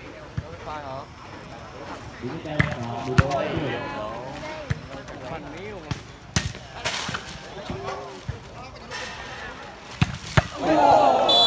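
A volleyball is hit with sharp slaps.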